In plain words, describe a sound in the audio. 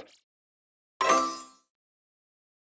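A short victory jingle plays.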